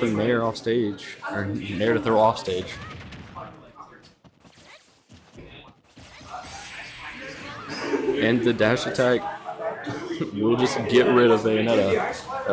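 Video game fighting effects crash and whoosh.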